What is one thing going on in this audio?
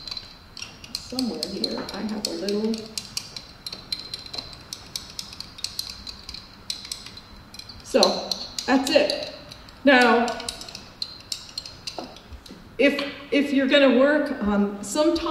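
An older woman speaks calmly into a nearby microphone.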